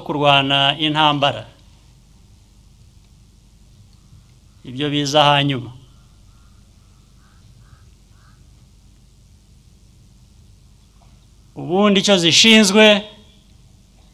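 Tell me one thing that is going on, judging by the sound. A middle-aged man speaks slowly and firmly through a microphone, with long pauses between phrases.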